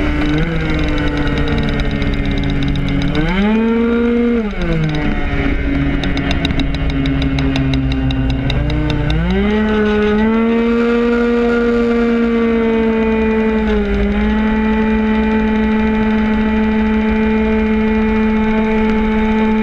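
A go-kart engine revs loudly, rising and falling in pitch through the corners.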